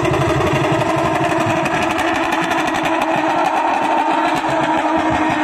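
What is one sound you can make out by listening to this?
A car engine roars and revs loudly in the distance.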